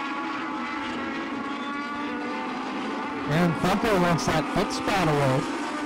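Racing car engines drone steadily around a track.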